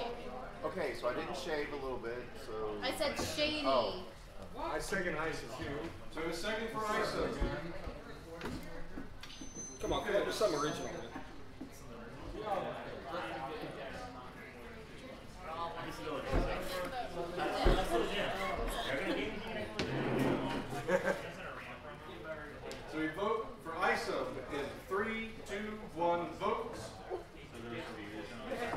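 Several men and women talk and laugh together.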